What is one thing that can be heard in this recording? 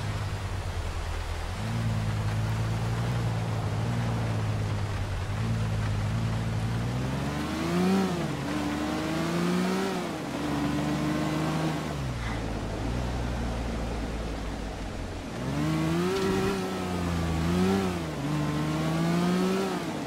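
A car engine hums and revs up and down as it drives.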